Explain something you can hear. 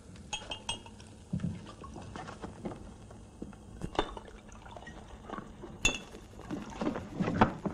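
Glass bottles and dishes clink on a table.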